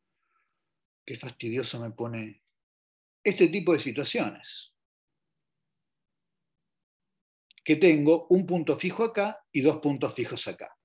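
A man talks calmly over an online call, pausing between phrases.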